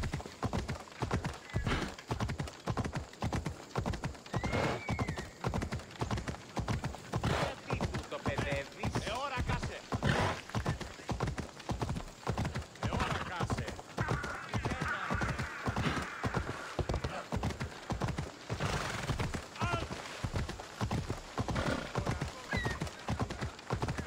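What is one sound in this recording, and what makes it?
Horse hooves gallop steadily on stone.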